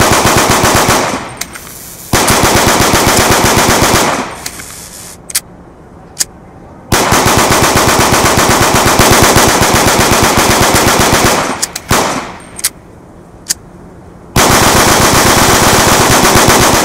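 Pistols fire in rapid bursts of shots.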